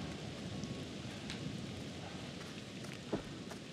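Slow footsteps crunch on gravel.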